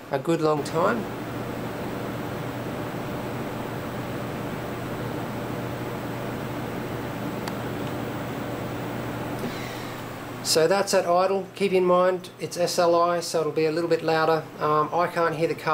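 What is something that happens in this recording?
Computer cooling fans hum steadily.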